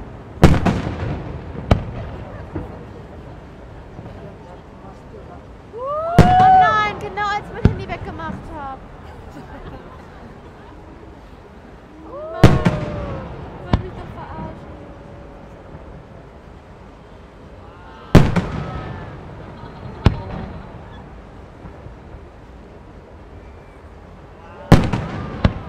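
Fireworks burst with loud booms that echo away.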